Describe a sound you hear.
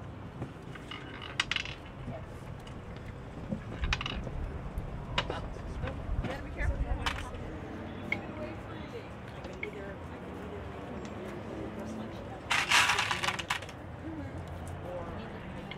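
Several women talk quietly outdoors.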